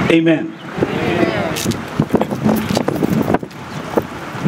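A middle-aged man speaks into a microphone through a loudspeaker outdoors.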